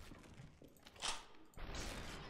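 A gunshot cracks.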